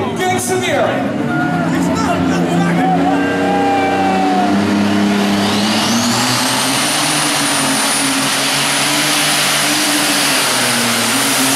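A tractor engine revs up into a loud, rising roar.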